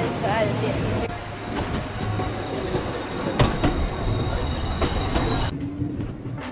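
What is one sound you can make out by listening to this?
A tram rumbles along its rails.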